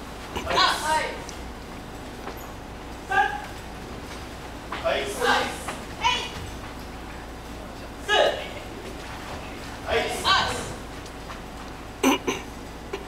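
A group of young people and adults shout sharp, short cries together in an echoing hall, again and again.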